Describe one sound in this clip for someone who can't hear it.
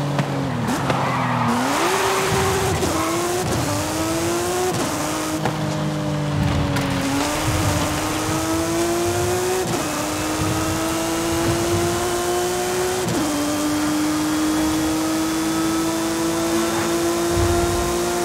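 A racing car engine roars loudly, climbing in pitch and dropping back at each gear change.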